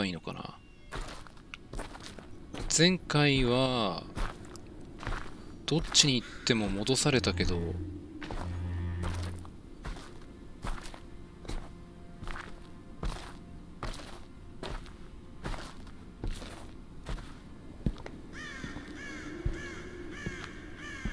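Footsteps crunch steadily over gravel and stone outdoors.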